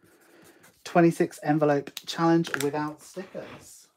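A pen is set down on a table with a light tap.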